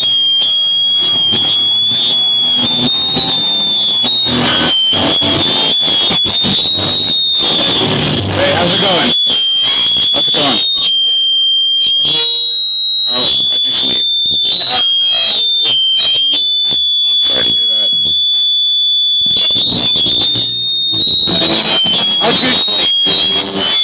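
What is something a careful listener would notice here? Guitar feedback squeals in a high, steady whine.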